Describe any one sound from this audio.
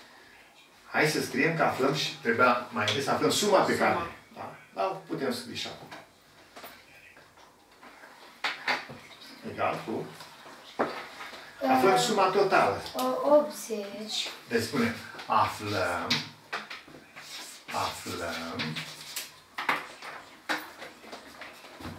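An elderly man speaks calmly, explaining.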